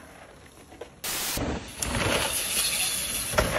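Bicycle tyres crunch over a loose dirt trail.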